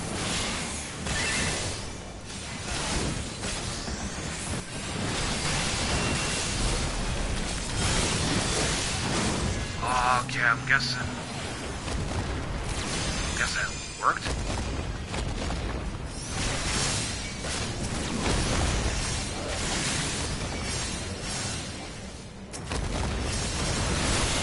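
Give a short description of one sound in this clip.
Magic blasts and clashing blows ring out in a busy battle.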